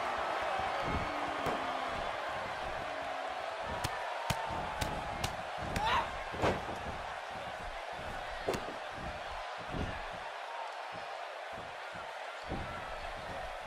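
Heavy thuds land on a wrestling mat.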